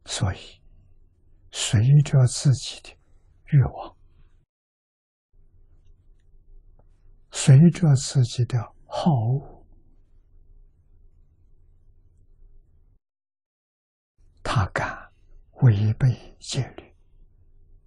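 An elderly man speaks calmly into a close microphone, in short phrases with long pauses.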